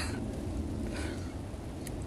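A young woman bites and chews food.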